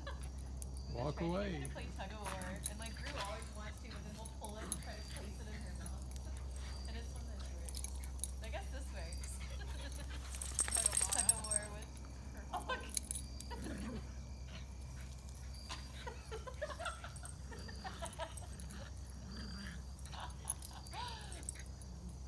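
A dog whines and yips in short bursts.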